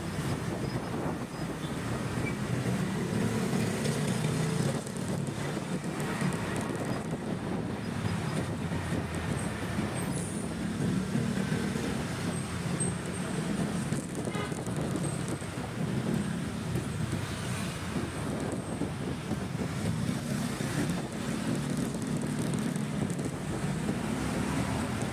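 Wind rushes past a microphone throughout.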